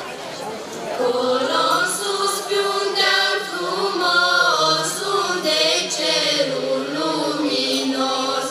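A choir of young singers sings together through loudspeakers outdoors.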